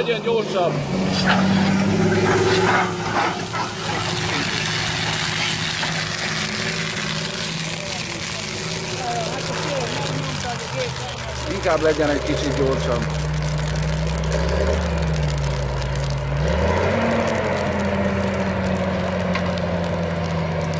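A tractor engine rumbles steadily, its pitch rising and falling.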